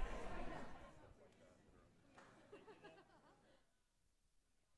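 A crowd of men and women chatter in a large room.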